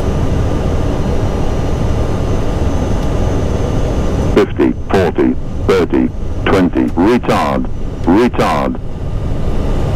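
Jet engines roar with a steady low rumble.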